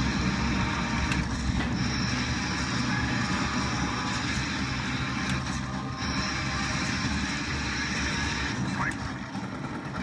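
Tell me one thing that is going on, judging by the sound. Explosions boom from an arcade game's loudspeakers.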